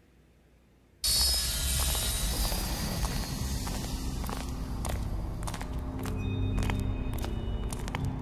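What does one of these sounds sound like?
Footsteps of men walk down stone stairs.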